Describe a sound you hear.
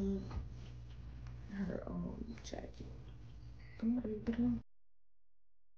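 Fabric rustles as clothes are handled.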